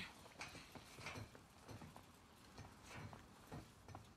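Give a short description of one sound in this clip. Footsteps clank on metal grating.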